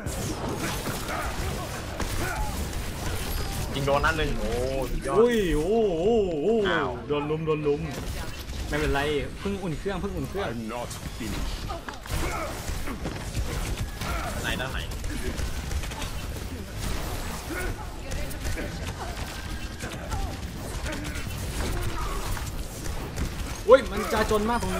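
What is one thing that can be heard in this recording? Game weapons fire in rapid bursts with crackling energy blasts.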